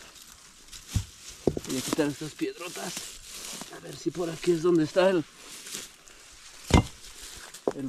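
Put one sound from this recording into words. A rock knocks on the ground.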